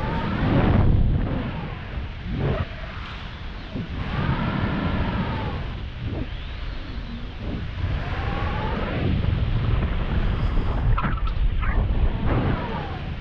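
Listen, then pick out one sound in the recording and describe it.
Wind rushes and buffets loudly in open air.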